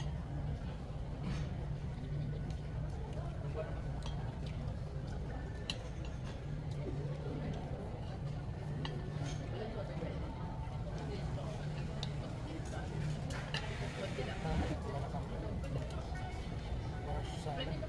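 Cutlery clinks and scrapes on plates.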